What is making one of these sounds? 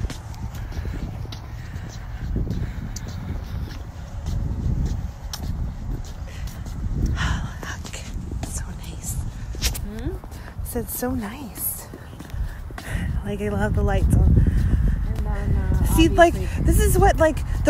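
A young woman talks excitedly close to the phone.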